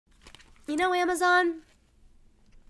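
A young woman speaks softly and closely into a microphone.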